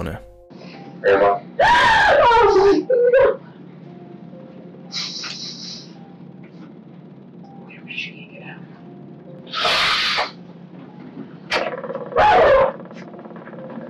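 An elderly woman cries out in distress.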